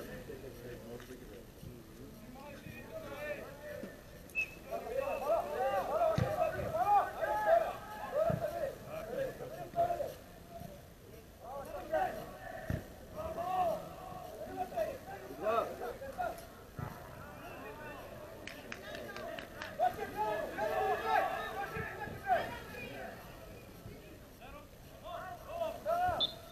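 Men shout across an open stadium, heard from a distance.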